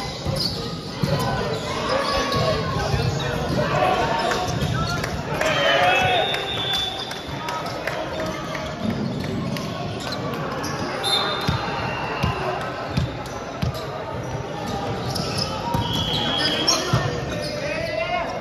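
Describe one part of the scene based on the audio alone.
Players' voices and shouts echo through a large hall.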